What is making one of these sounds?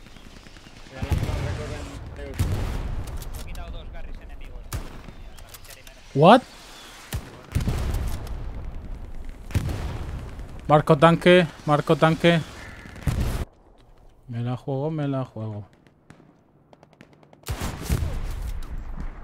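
Gunshots bang out sharply.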